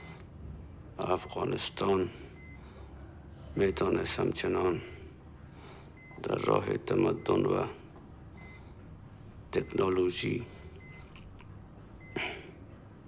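A middle-aged man speaks slowly and weakly, in short phrases with pauses, close by.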